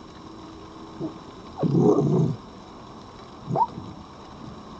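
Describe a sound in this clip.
A fox gives short yelping cries nearby.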